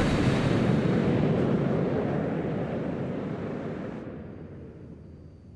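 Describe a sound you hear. A jet engine roars loudly and then fades away.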